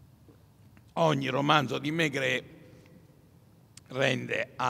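An elderly man speaks calmly into a microphone, heard through loudspeakers in a large hall.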